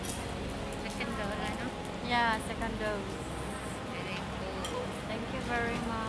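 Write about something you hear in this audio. A woman speaks close by in a calm, cheerful voice.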